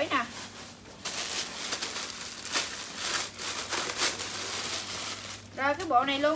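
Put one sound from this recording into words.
Plastic wrapping rustles and crinkles as clothes are handled.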